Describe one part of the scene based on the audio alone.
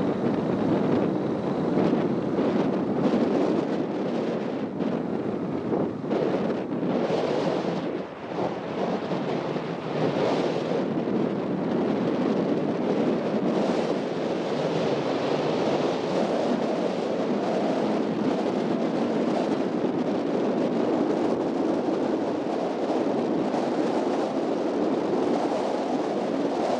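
A car drives along a paved road with a steady rumble.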